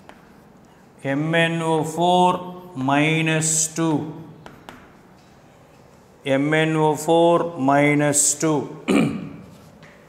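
A man speaks slowly and clearly, as if teaching, close by.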